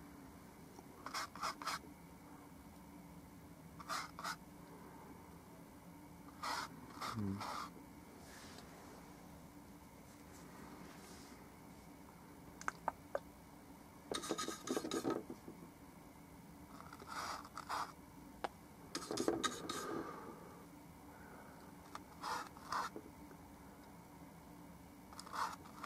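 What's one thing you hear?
A paintbrush brushes lightly across canvas in short, scratchy strokes.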